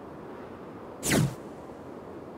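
A short electronic whoosh sweeps downward.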